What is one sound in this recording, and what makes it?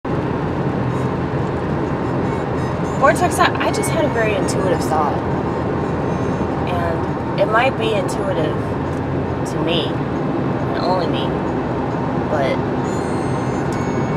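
A car engine and road noise rumble steadily.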